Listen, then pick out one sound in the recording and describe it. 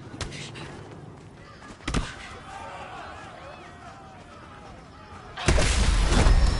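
Punches land with heavy thuds.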